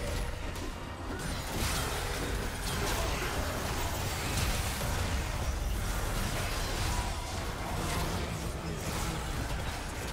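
Video game battle sound effects clash and burst rapidly.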